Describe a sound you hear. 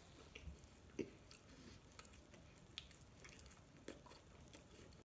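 A young man chews food noisily with his mouth full.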